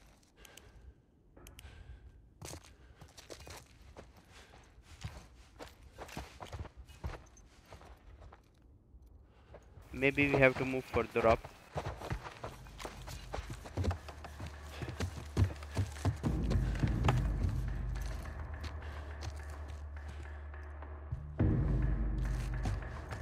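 Footsteps creak on wooden floorboards and stairs.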